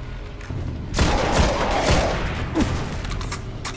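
A video game rifle fires several loud shots.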